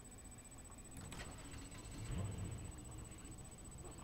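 A truck engine rumbles and revs briefly.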